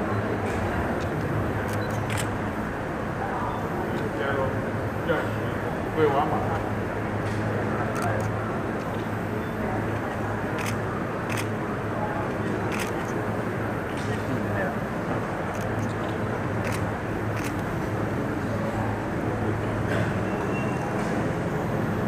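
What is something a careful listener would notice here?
A crowd murmurs steadily in a large echoing hall.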